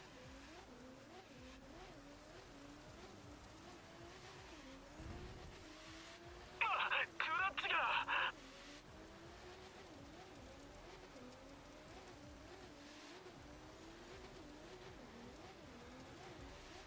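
Tyres skid and crunch.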